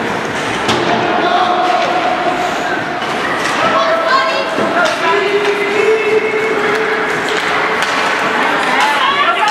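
A crowd of spectators shouts and cheers in an echoing arena.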